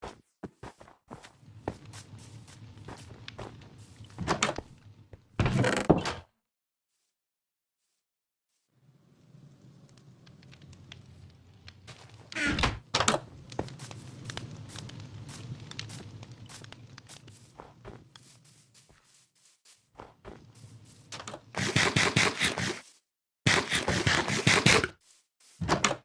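Footsteps thud on dirt and snow.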